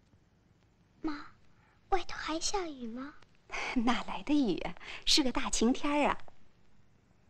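A woman speaks gently and warmly, close by.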